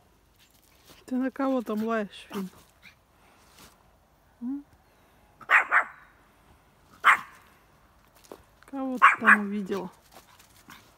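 A small dog whines and yelps in a high voice.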